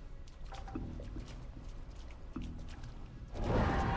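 Footsteps splash through shallow water.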